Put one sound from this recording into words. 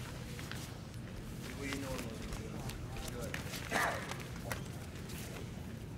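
Bodies shuffle and thump on a mat as two grapplers wrestle.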